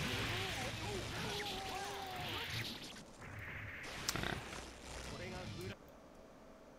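Video game fighting sound effects clash and burst.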